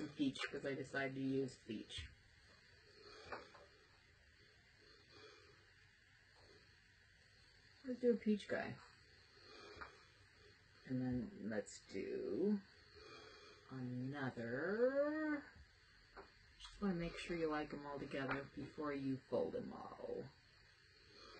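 A middle-aged woman talks calmly close by, in short bursts.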